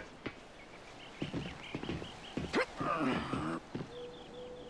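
Footsteps thud on a metal platform.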